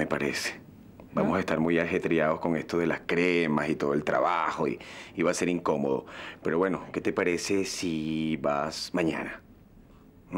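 A man speaks softly and warmly up close.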